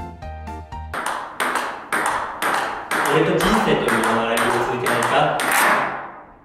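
A ping-pong ball clicks back and forth against paddles and a table in a quick, steady rally.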